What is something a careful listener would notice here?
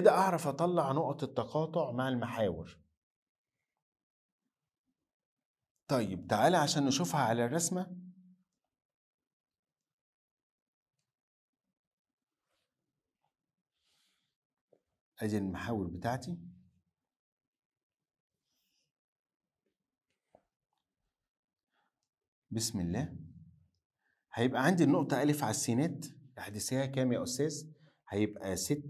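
A man speaks calmly and explains, close to a microphone, in short bursts with pauses.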